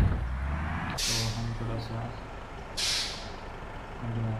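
A bus door opens with a sharp hiss of air.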